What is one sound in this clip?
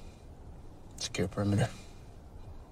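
A young man speaks quietly, close by.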